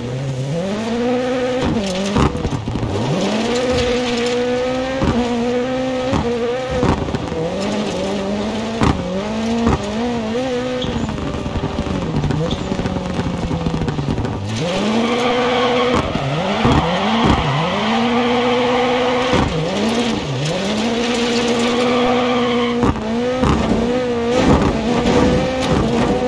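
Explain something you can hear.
Tyres skid and scrabble over loose gravel.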